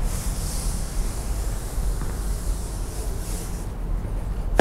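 Chalk scratches on a blackboard.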